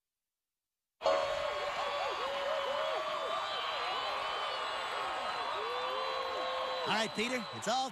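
A crowd cheers loudly at a concert.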